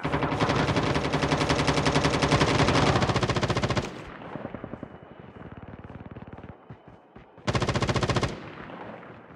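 A rifle fires rapid bursts of automatic fire at close range.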